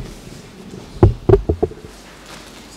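A microphone is bumped, giving a few loud thuds.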